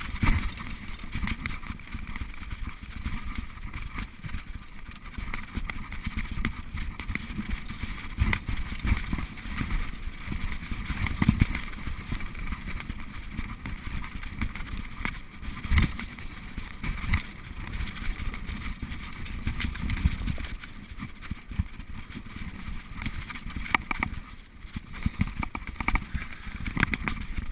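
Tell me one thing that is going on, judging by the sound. Bicycle tyres rumble and rattle over a bumpy dirt trail.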